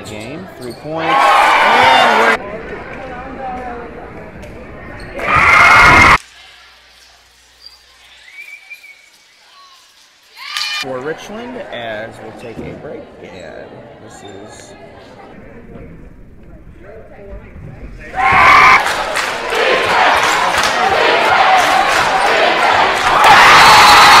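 A large crowd cheers and roars in an echoing gym.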